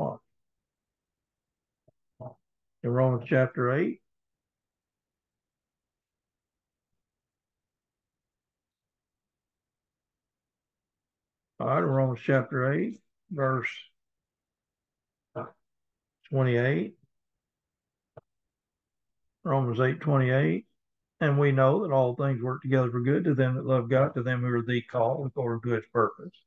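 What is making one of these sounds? An elderly man speaks calmly with pauses, heard through an online call.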